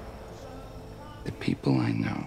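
A man speaks softly in a low voice.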